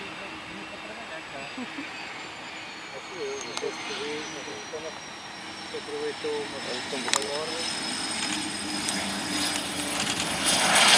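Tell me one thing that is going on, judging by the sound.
A jet engine whines steadily and grows louder.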